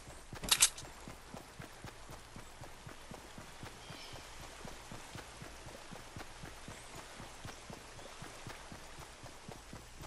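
Footsteps splash quickly and steadily through shallow water.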